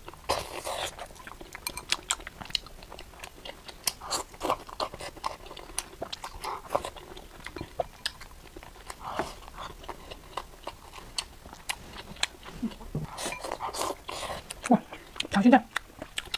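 Chopsticks clink against a glass bowl.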